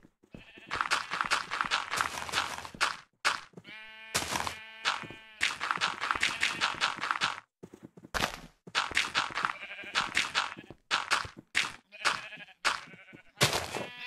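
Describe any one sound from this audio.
Blocks thump as they are set down.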